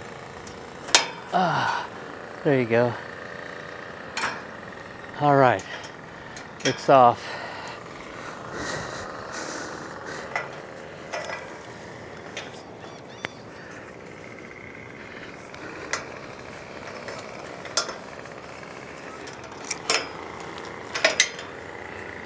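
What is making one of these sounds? Metal clinks and knocks on a steel tower.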